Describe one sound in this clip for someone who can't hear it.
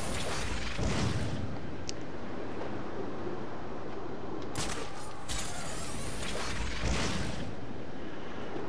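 Wind rushes loudly past in gusts.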